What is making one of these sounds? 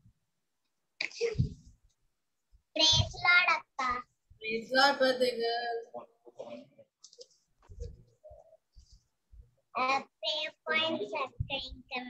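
A young girl speaks with animation, heard through a small microphone.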